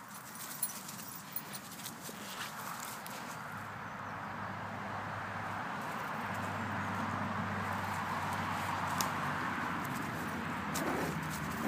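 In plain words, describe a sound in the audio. Small dogs growl playfully at close range.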